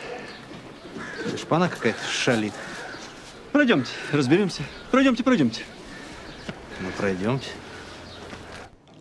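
A man answers briskly.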